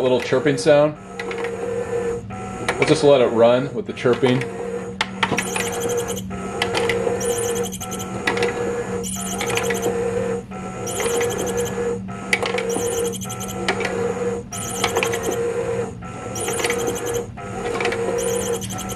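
An electric toy whirs with a steady motor hum, pausing briefly every couple of seconds.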